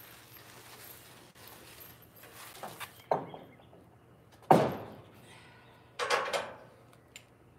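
Boots thump on a wooden trailer deck.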